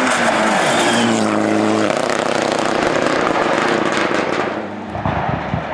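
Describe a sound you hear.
A rally car engine roars loudly as the car speeds past close by.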